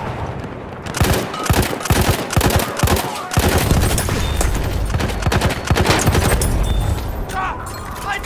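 A machine gun fires rapid bursts close by.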